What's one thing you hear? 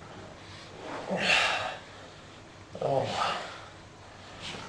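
A young man sniffs sharply up close.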